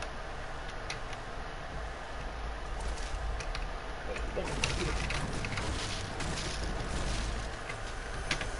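Footsteps thud on a hard surface.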